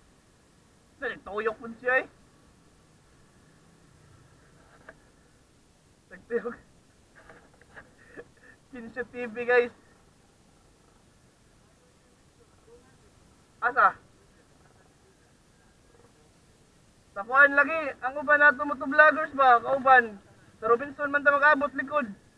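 A man talks close to a microphone, calmly and in short bursts.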